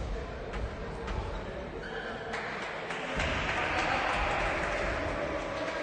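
A basketball bounces on a wooden floor, echoing in a large hall.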